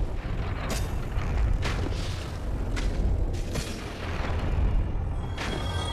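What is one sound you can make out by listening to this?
A heavy sword swings through the air with loud whooshes.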